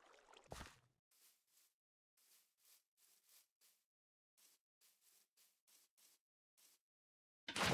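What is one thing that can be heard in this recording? Footsteps patter on grass.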